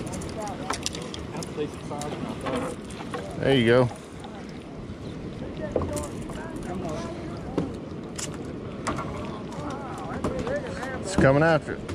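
A fishing reel whirs and clicks as its handle is cranked.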